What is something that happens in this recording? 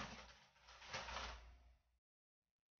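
Hands squelch and knead dough in a plastic bucket.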